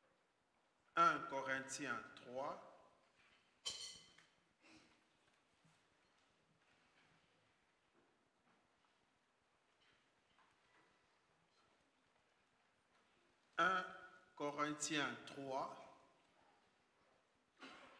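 An elderly man speaks slowly and solemnly into a microphone, with long pauses.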